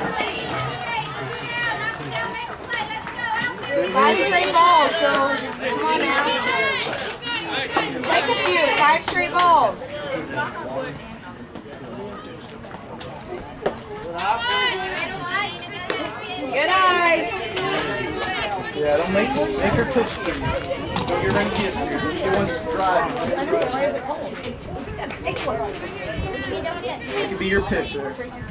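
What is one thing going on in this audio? Young women shout and cheer outdoors.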